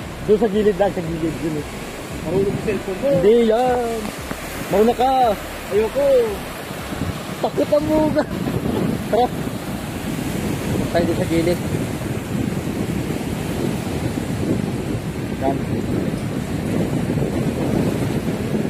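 Small waves wash onto a rocky shore.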